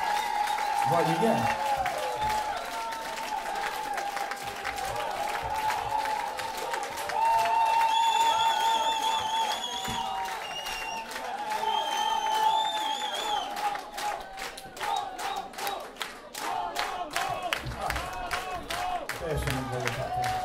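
A live band plays music in a hall.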